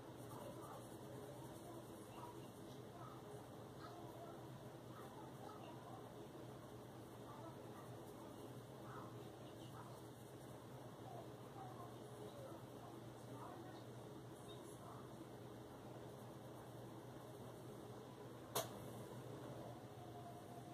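A coloured pencil scratches softly across paper.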